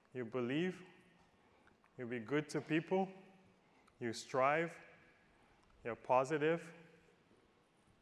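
A man speaks calmly into a microphone in short phrases.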